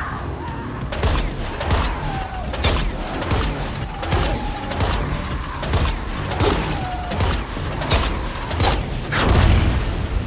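A heavy cannon fires in repeated booming blasts.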